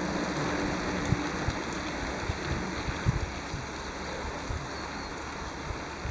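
Bicycles roll past on a paved road with a soft whir of tyres.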